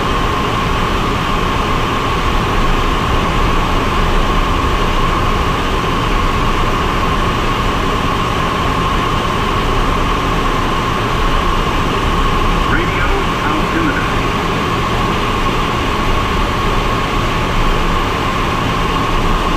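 Wind rushes steadily past the cockpit.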